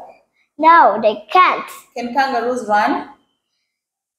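A woman speaks clearly and slowly, close by.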